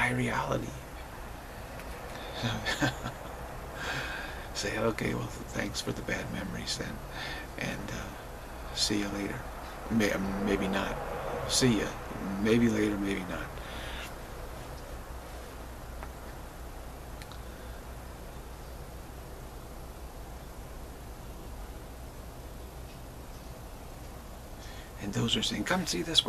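A middle-aged man talks calmly into a microphone close by.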